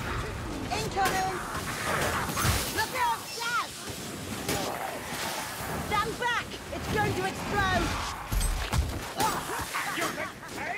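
Blade strikes land with sharp thuds.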